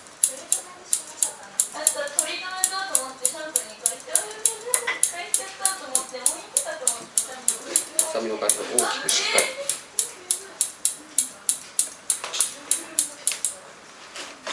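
Scissors snip quickly and steadily through hair.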